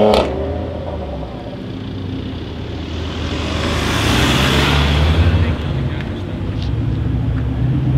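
A sports car engine idles with a deep rumble.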